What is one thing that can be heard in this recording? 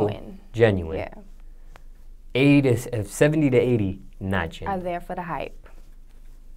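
A young woman speaks close to a microphone in a calm, casual way.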